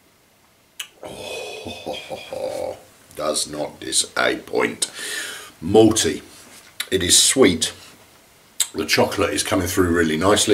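A middle-aged man talks calmly, close to the microphone.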